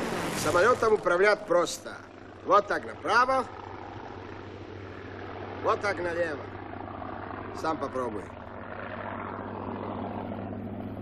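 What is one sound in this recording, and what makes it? A propeller plane's engine drones overhead.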